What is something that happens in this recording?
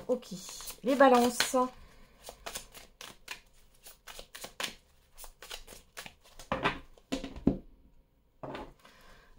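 Playing cards riffle and slap together as a deck is shuffled by hand.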